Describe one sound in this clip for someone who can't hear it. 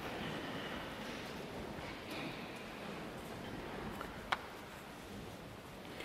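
Pages rustle as a man turns them.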